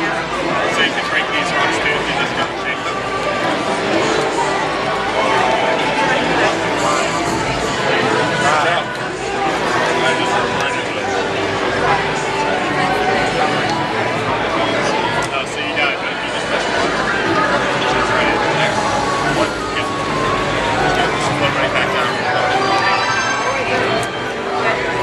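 A crowd of people chatters in the background of a busy, noisy hall.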